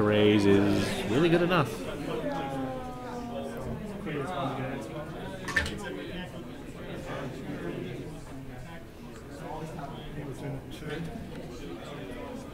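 Plastic game pieces click and tap on a table.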